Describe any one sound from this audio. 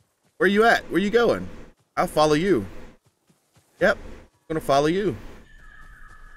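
A man talks animatedly into a close microphone.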